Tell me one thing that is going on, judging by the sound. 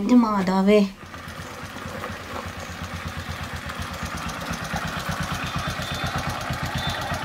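A motorcycle engine idles and putters steadily.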